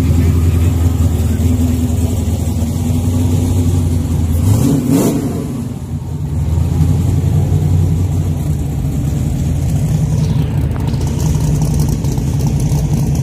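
A drag racing car's engine idles with a deep, loud rumble.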